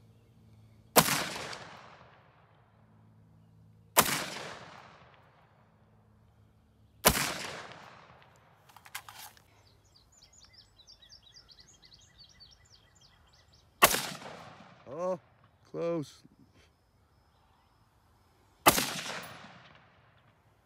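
A rifle fires single loud shots outdoors, each echoing away.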